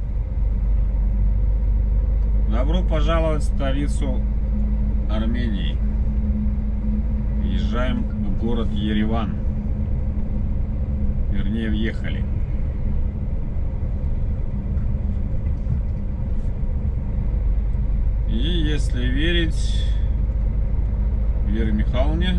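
A vehicle's engine hums and its tyres rumble steadily on the road.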